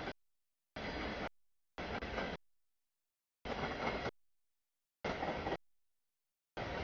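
A freight train rumbles and clatters past.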